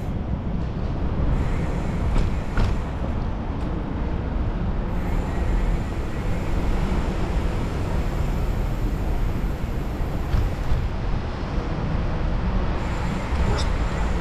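Bicycle tyres roll and rumble over paving.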